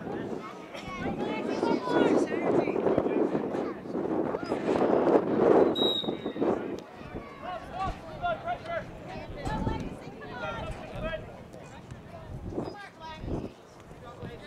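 Young men shout and call to each other from across an open field.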